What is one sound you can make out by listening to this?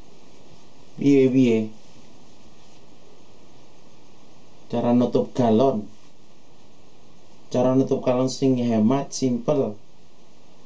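A man talks on a phone nearby in short, calm bursts.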